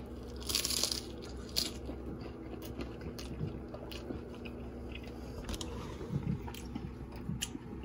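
A man chews and smacks his lips close by.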